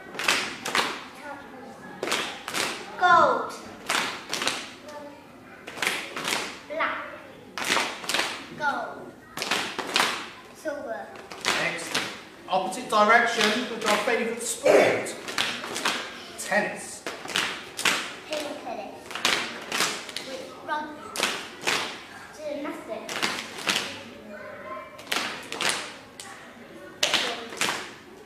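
Children clap their hands in rhythm, echoing in a large room.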